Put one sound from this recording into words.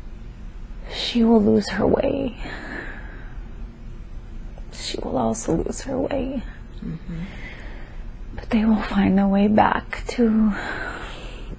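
A young woman snores loudly in her sleep, close by.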